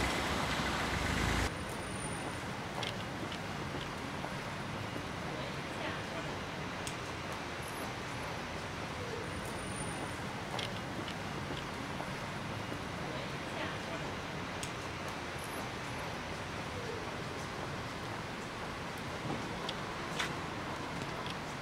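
Footsteps tap on wet cobblestones.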